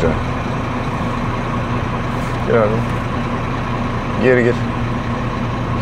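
A truck engine rumbles steadily from inside the cab.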